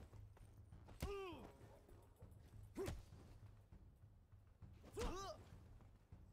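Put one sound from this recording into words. A man grunts with effort while fighting.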